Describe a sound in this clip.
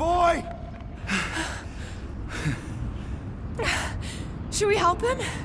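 Men and women breathe heavily.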